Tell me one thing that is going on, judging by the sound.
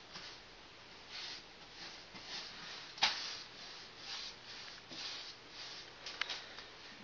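A paintbrush swishes in short, repeated strokes.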